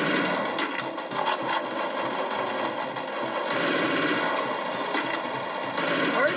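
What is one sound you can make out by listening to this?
Video game gunshots and effects play loudly and busily from a tablet.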